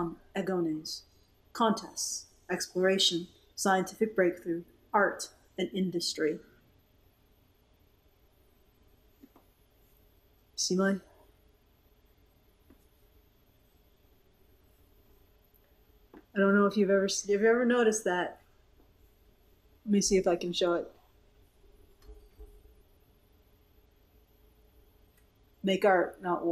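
A woman speaks close to a microphone, with pauses between phrases.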